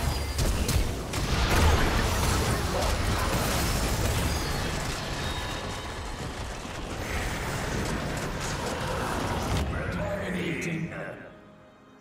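Game spells and weapon blows crash and whoosh in quick bursts.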